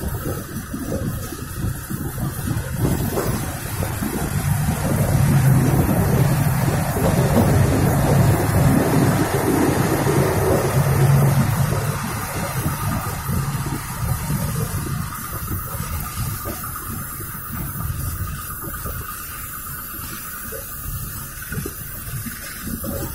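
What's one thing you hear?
Train wheels clack over track joints.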